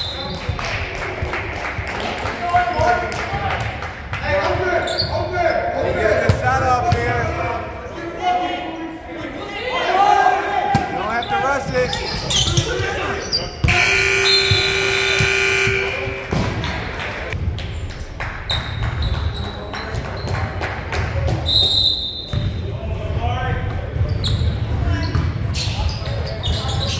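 Sneakers squeak on a hard court in an echoing gym.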